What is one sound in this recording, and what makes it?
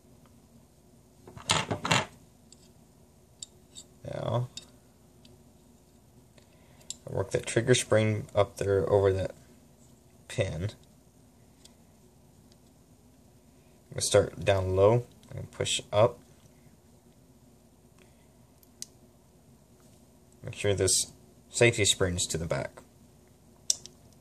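Small metal parts click softly as a revolver frame is handled.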